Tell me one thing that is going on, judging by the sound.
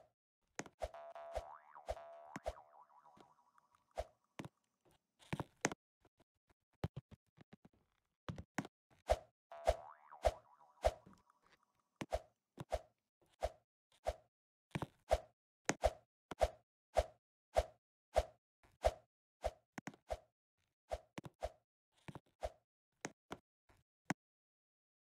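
A game character's jumps and steps make short tapping sound effects in quick succession.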